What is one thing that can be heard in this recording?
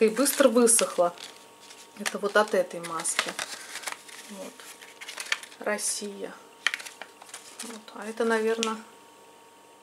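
A plastic packet crinkles and rustles in someone's hands.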